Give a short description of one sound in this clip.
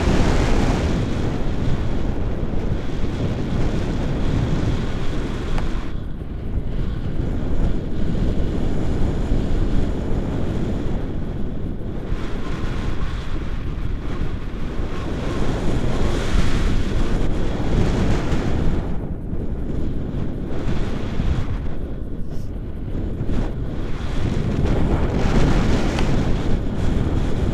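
Wind rushes and buffets loudly against the microphone, high up outdoors.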